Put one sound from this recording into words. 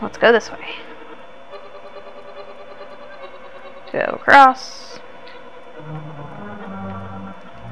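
Retro video game music plays steadily.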